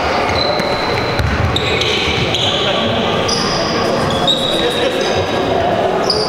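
A basketball bounces on a wooden floor with dull thumps.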